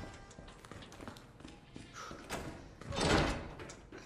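A heavy door swings open with a loud bang.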